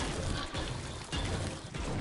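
A pickaxe strikes a wall.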